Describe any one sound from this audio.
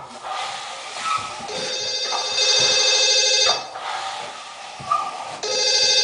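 A steel trowel scrapes across a plastered wall.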